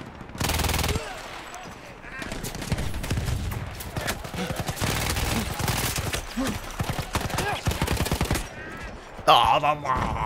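Gunfire and explosions rumble loudly in a game battle.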